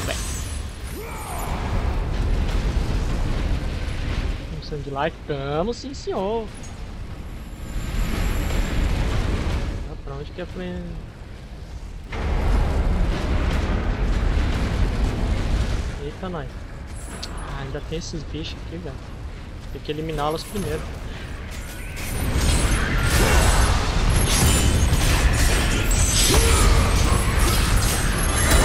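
Flames roar from a furnace.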